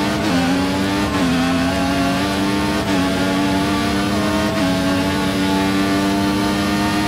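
A racing car engine screams at high revs, dropping briefly with each gear shift.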